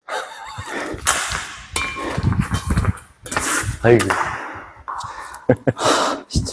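A racket strikes a shuttlecock with a sharp pop.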